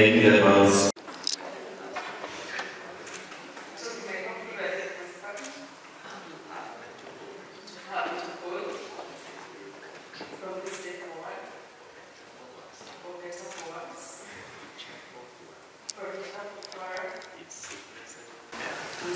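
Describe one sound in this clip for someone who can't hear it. A young woman speaks softly through a microphone.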